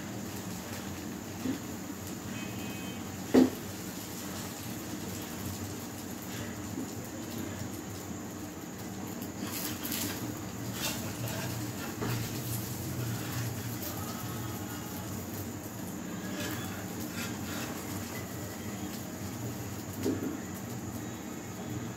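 A gas burner hisses and roars steadily.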